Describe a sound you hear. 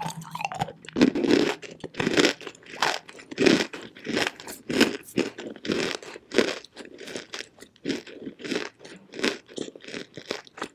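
Fingers tap and scratch a hard chalky lump close to a microphone.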